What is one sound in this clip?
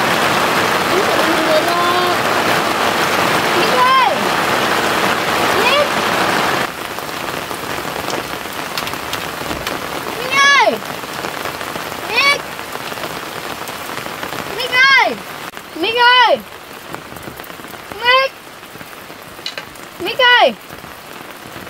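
A young boy calls out loudly, again and again.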